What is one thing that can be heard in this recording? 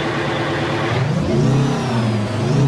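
A truck engine revs up and down.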